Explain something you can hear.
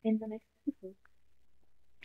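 A young woman speaks cheerfully over an online call.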